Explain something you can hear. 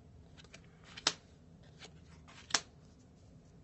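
Cards are laid down on a table with light taps.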